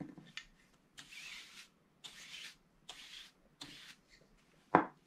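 A stiff brush spatters paint in short bursts.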